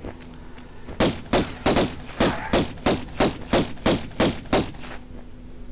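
Quick footsteps slap on a stone floor.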